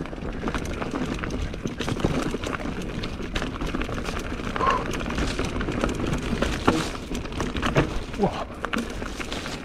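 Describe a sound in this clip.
A bike rattles and clatters over bumps.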